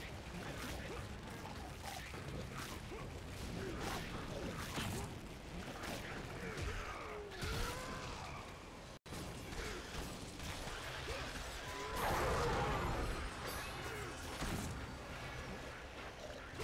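Metal blades slash and strike repeatedly in quick bursts.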